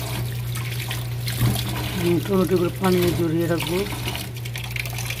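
Water runs from a tap and splashes into a bowl.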